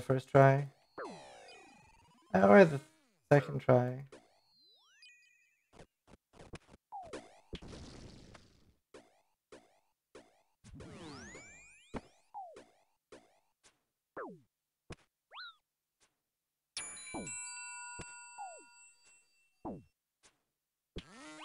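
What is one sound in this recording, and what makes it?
Game sound effects chime and click.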